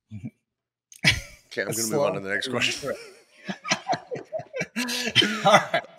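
A younger man laughs over an online call.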